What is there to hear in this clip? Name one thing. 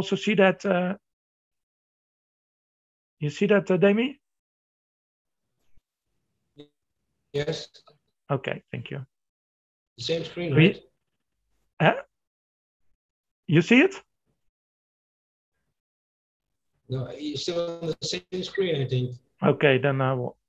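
An older man speaks calmly over an online call, in short bursts with pauses.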